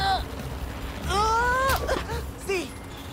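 A boy groans loudly.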